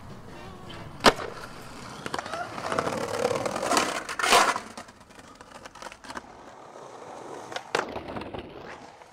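A skateboard's wheels roll and clack on concrete.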